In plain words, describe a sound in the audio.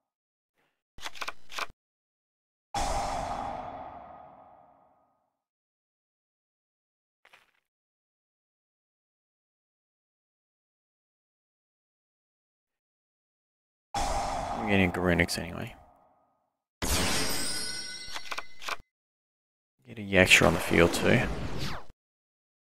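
A video game plays short sound effects as cards are played.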